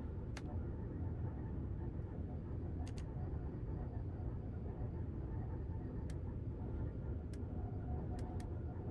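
A train rumbles along steadily, heard from inside the cab.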